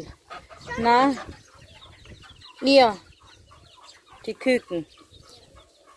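Ducks call loudly nearby in short bursts.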